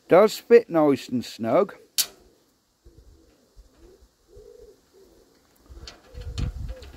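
A thin metal rod scrapes and clicks against a small metal fitting.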